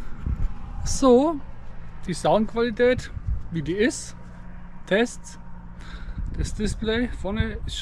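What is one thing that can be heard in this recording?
A young man talks calmly, close up.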